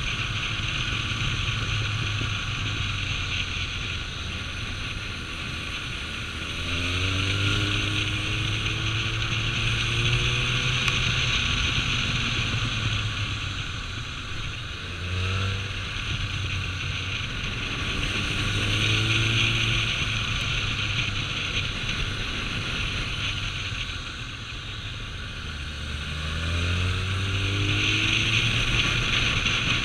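A motorcycle engine hums and revs up and down through the gears.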